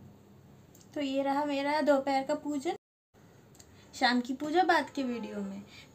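A young woman speaks close to a microphone in a cheerful tone.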